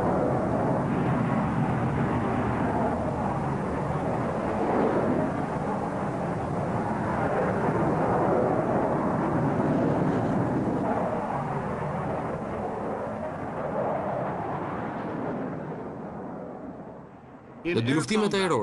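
A jet engine roars loudly.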